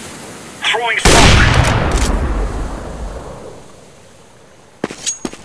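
A sniper rifle fires a single loud shot that booms and slowly fades.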